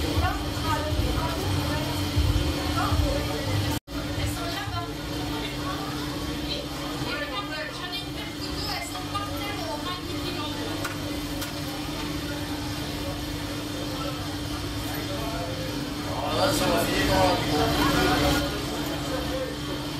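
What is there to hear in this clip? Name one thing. A metal spatula scrapes and stirs food in a large pan.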